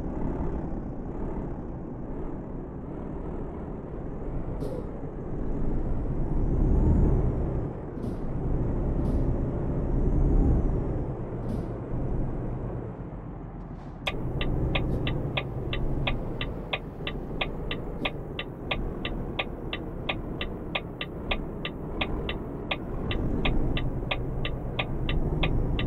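A truck engine hums low and steady, rising and falling with speed.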